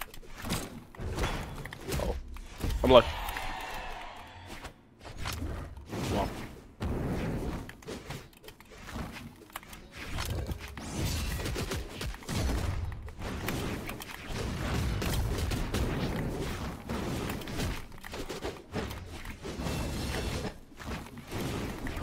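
Game fight sounds hit and whoosh rapidly.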